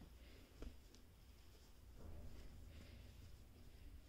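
A hand rubs and rustles a blanket.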